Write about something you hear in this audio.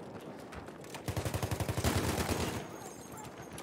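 A machine gun fires a rapid burst.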